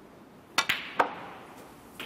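Snooker balls clack against each other.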